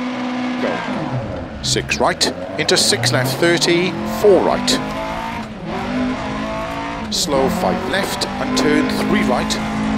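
A rally car accelerates and shifts gears.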